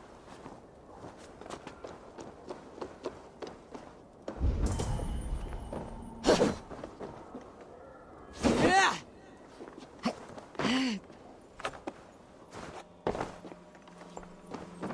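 Footsteps tap and thud on wooden boards.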